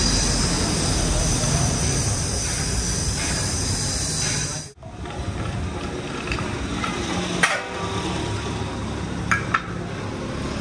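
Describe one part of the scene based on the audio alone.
An angle grinder whirs loudly as it grinds metal.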